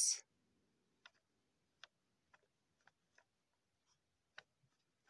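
A pen scratches and taps softly on paper.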